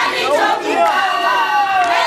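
A woman shouts nearby.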